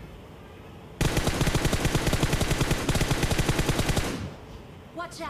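An automatic rifle fires a long rapid burst.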